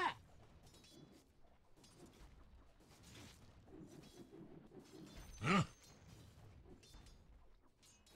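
Video game fighting sounds clash and thud.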